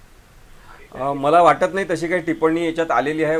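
A man speaks with animation over a phone line.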